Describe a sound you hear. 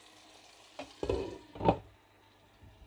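A glass lid clatters onto a metal pan.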